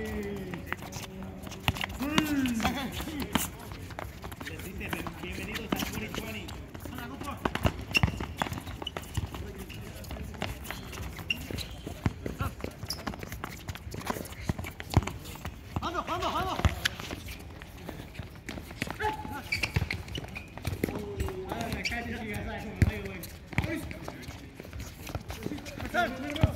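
Young men shout and call out to each other nearby, outdoors.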